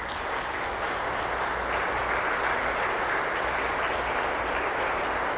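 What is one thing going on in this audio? A pipe organ plays loudly, echoing through a large hall.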